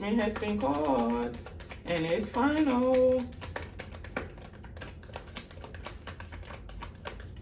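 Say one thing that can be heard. Playing cards are shuffled by hand with quick, soft clicks.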